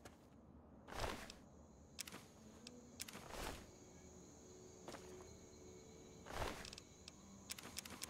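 A menu clicks as items are taken.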